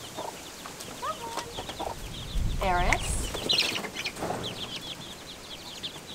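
A hen clucks.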